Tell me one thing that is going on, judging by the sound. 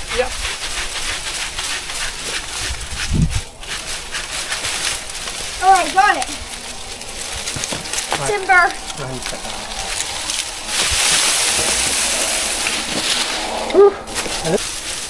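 Dry palm leaves rustle and crackle as they are pulled and dragged.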